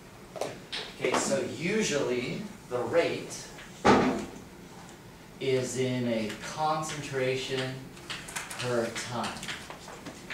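A young man speaks calmly, lecturing.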